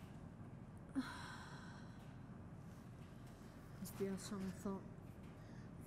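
A young woman sobs and sniffles close by.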